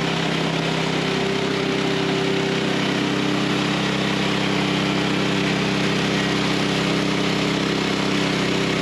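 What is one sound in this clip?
A band saw blade whines as it cuts through a log.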